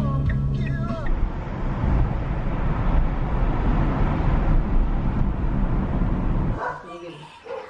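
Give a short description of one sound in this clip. A car engine and tyres rumble steadily.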